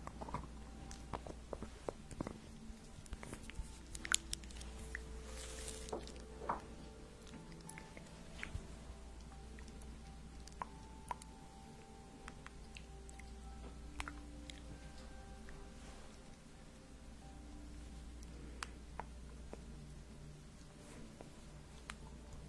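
A young woman whispers softly and closely into a microphone.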